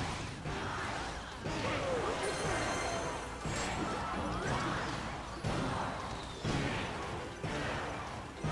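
Fighting sound effects clash and crackle without a break.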